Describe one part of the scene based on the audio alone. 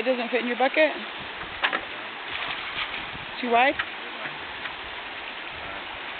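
Water pours from a bucket and splashes into the stream.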